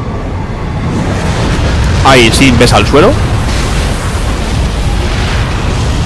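A heavy crash booms and rumbles.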